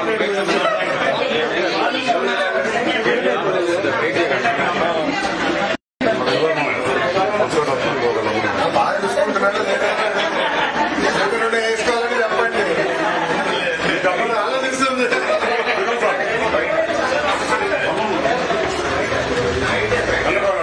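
A crowd of men and women talk over one another at close range.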